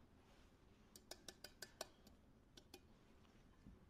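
Small metal and glass vessels clink softly.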